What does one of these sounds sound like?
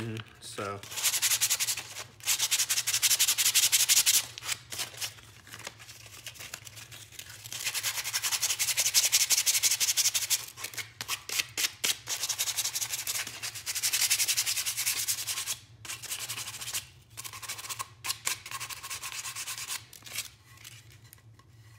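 Sandpaper rubs back and forth on wood in quick, rasping strokes.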